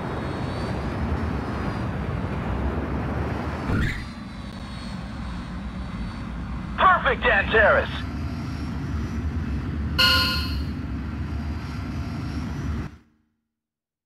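Jet engines roar steadily as an airliner rolls along a runway and slows.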